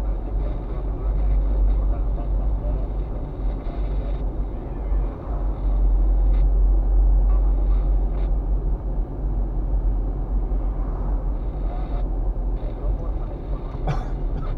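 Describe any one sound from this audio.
Tyres roll on the road surface.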